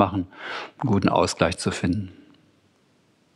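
A man speaks calmly through a microphone.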